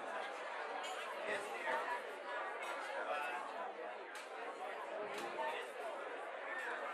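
Many young men and women chatter at once in a room.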